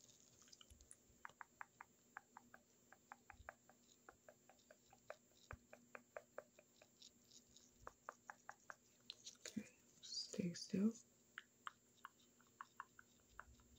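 A plastic object taps and clicks softly close to a microphone.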